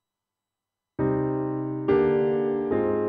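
A piano plays chords.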